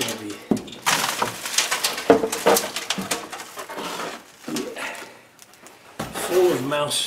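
A stiff board scrapes and rustles as it is handled.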